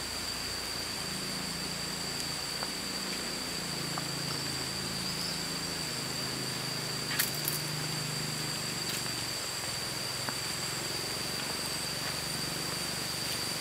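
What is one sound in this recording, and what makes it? Footsteps tread on a stone path.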